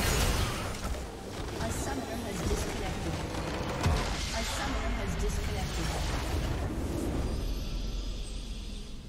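Game battle effects crash and boom loudly.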